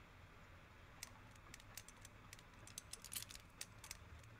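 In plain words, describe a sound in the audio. A combination lock's dial clicks as it turns.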